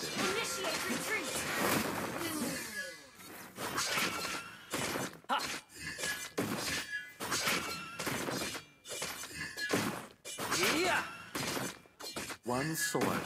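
Game sound effects of blows and spells clash and whoosh in rapid bursts.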